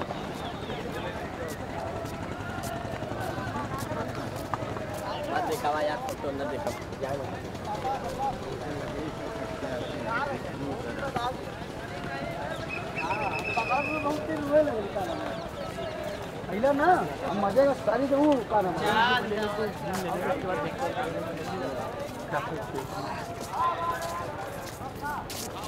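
Footsteps scuff on stone steps.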